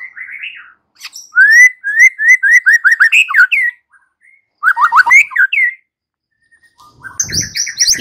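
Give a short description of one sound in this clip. A songbird sings loud, rapid whistling phrases close by.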